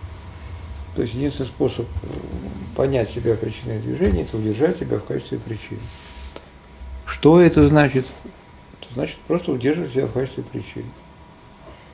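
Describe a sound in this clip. An elderly man speaks calmly, picked up by a nearby microphone.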